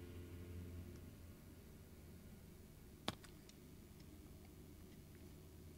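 An electric guitar plays softly.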